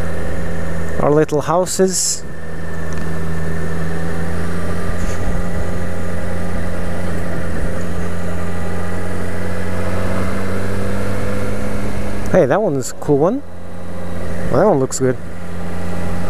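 A motorcycle engine revs up and down briefly between gear changes.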